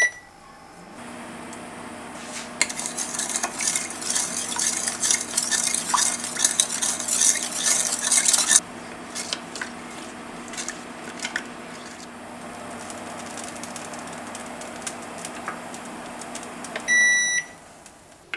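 Milk hisses as it heats in a pan.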